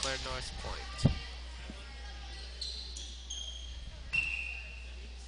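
A volleyball is struck with a sharp thump.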